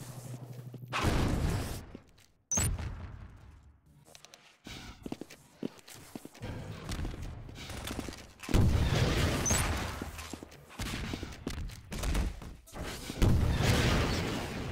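A rocket explodes with a heavy, rumbling boom.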